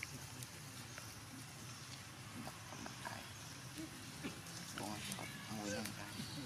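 Dry grass and leaves rustle as a small monkey squirms on the ground.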